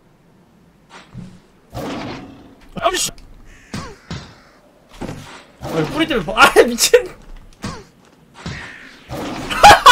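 A young man talks excitedly and laughs, heard close through a microphone.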